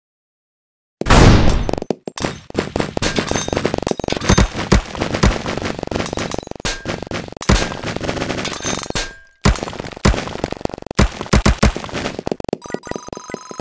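Blocks shatter with rapid crunching knocks.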